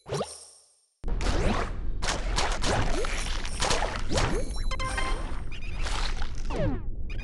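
A shark chomps prey with quick crunching bites.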